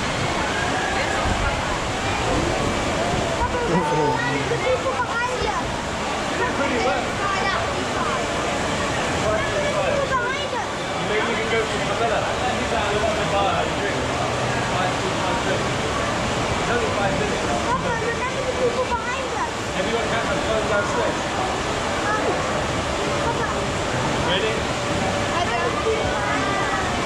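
Water rushes steadily down a slide.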